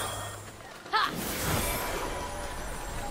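A bright chime rings.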